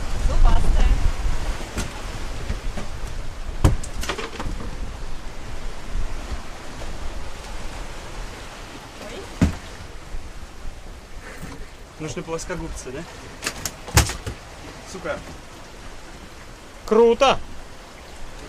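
Wind rushes and waves splash against a moving boat.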